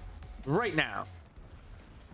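A man lets out a short, sharp fighting shout.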